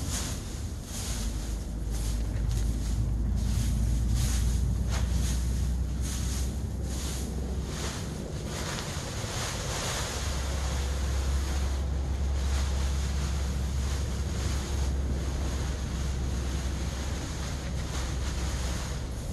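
A shovel scrapes and scoops dry husks.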